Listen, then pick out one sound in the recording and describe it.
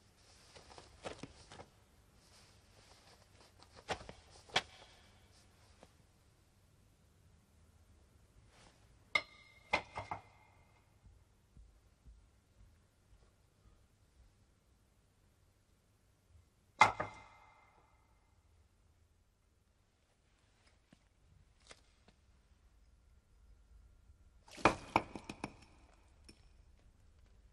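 Hands scrape and rustle in debris on a floor.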